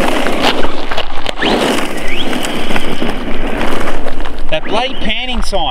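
Tyres of an RC truck crunch over loose gravel.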